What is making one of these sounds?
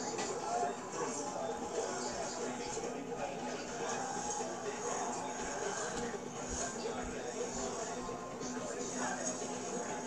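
Music plays from a small phone speaker.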